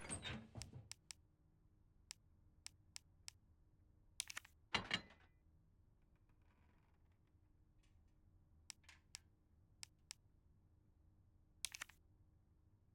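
Menu clicks tick sharply, one at a time.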